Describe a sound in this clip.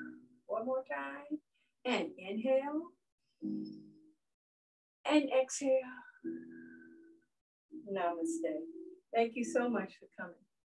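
An older woman speaks calmly and clearly, heard through an online call.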